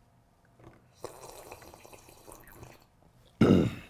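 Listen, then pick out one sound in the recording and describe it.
A woman slurps a drink from a mug.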